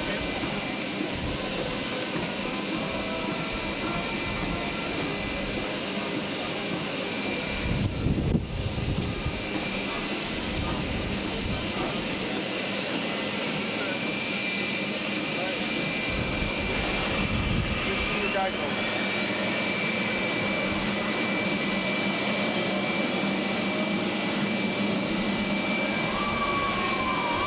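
A jet aircraft engine whines steadily nearby.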